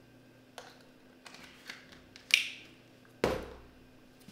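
Small objects rustle and clatter in a man's hands.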